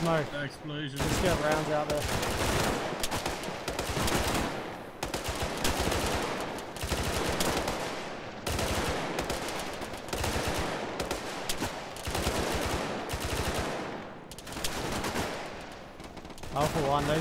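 Rifles fire in rapid bursts close by.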